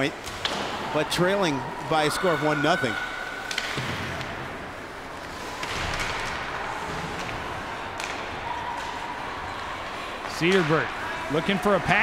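A man shouts loudly, echoing through a large hall.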